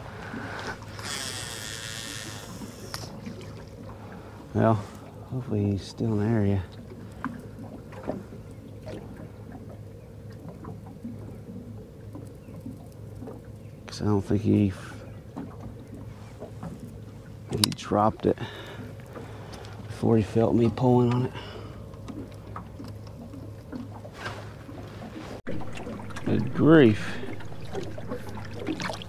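Water laps against a small boat.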